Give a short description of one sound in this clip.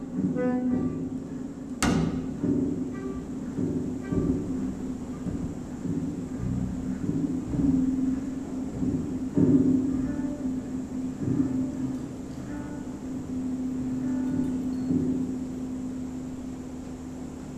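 Drums and cymbals keep a light beat.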